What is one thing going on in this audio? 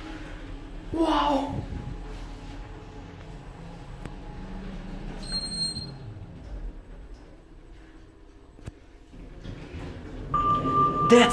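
An elevator car hums as it travels.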